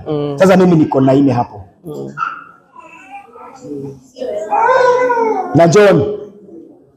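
A man speaks with animation into a microphone, heard through a loudspeaker in a large room.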